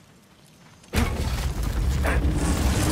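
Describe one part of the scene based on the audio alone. A heavy lid creaks and scrapes open.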